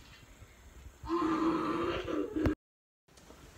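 A boy growls playfully close by.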